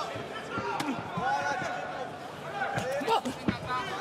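A kick lands on a body with a sharp thud.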